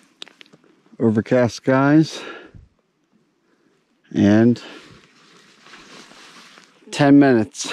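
A young man speaks calmly close by, outdoors.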